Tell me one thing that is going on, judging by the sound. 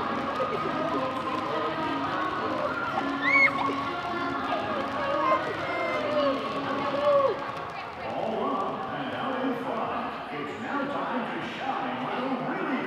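A crowd of children and adults chatters in the background.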